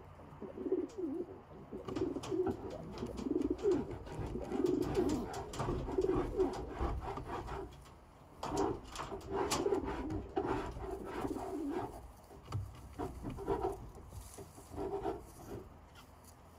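Pigeons coo softly close by.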